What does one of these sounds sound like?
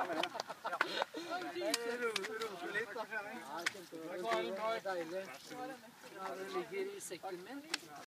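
Several young men talk and chatter nearby.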